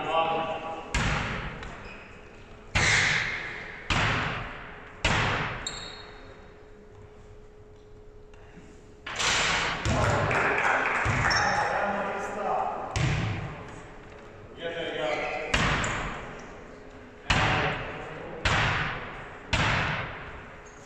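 A basketball bounces on a wooden floor, echoing through a large hall.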